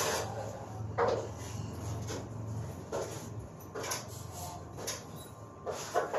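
Cables rustle and knock as someone handles them.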